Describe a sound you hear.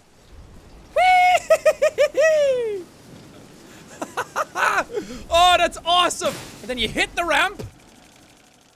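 A young man shouts with excitement into a close microphone.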